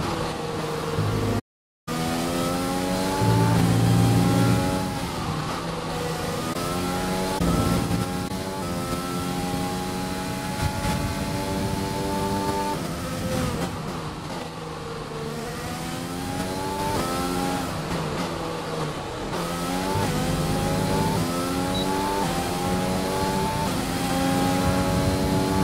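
A racing car engine screams loudly, its pitch climbing and dropping sharply with each gear change.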